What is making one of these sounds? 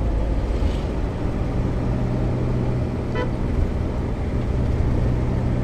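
A vehicle's engine rumbles steadily as it drives along.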